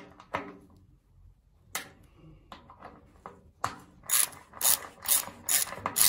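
A ratchet wrench clicks loudly while turning a bolt.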